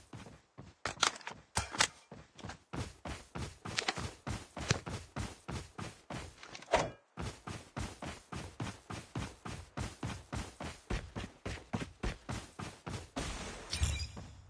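Quick footsteps run through grass.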